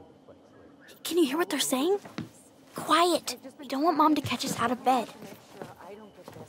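A second young girl answers in a hushed, urgent voice.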